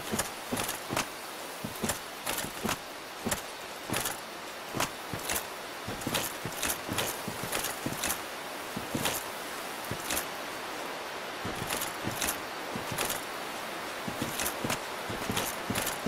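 Armoured footsteps clank and crunch steadily over grass.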